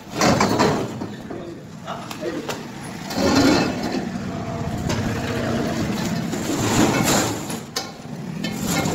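A heavy metal machine scrapes and thuds as it is lifted off a truck.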